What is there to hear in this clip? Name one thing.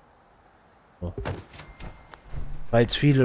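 A piece of furniture drops into place with a soft thud and a short chime.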